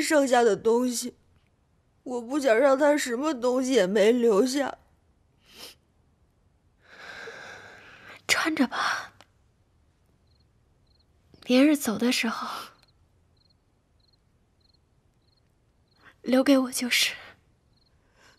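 A young woman speaks tearfully in a trembling voice.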